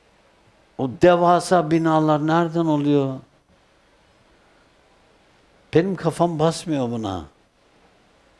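An elderly man speaks slowly and calmly through a microphone, in melodic phrases with long pauses.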